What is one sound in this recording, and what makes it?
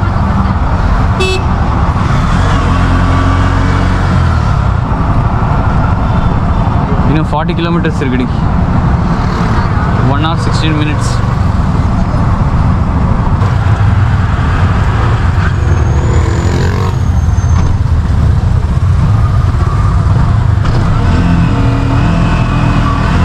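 A small three-wheeler engine rattles and hums steadily up close.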